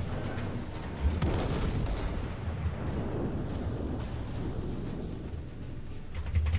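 Heavy ship guns fire with deep, rumbling booms.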